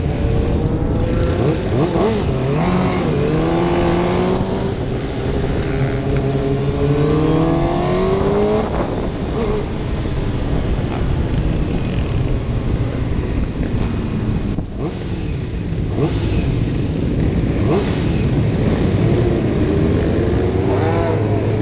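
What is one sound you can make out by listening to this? A motorcycle engine roars and revs up and down close by.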